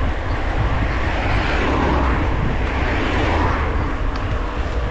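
A car passes close by with a rising and fading whoosh.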